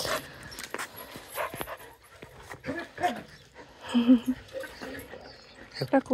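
A hand strokes a dog's fur with a soft rustle.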